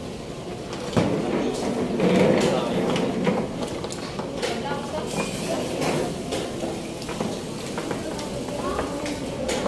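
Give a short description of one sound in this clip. Chess pieces clatter as they are swept together and reset.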